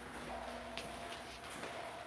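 Footsteps tread on a hard floor indoors.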